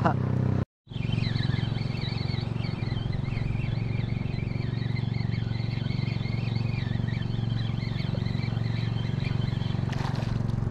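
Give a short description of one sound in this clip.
A fishing reel whirs as line is wound in.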